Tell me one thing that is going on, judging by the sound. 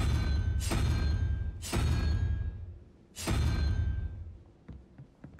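A heavy stone dial grinds and clunks loudly as it turns.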